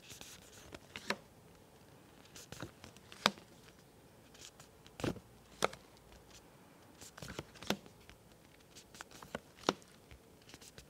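A young woman says short sounds clearly and calmly, close by.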